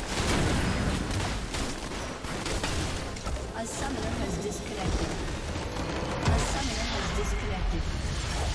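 Magical spell effects whoosh and crackle in quick bursts.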